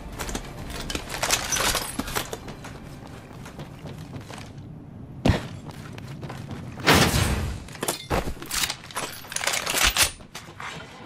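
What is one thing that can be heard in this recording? Footsteps run across a metal floor.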